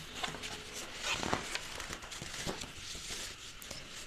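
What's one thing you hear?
A page of paper rustles as it is turned.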